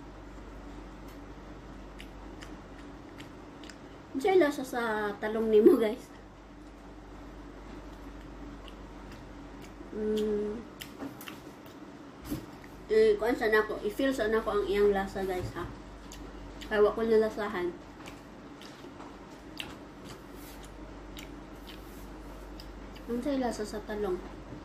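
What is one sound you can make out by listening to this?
A young woman chews and crunches food.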